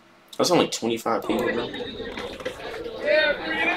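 A crowd of young men chatters and murmurs outdoors.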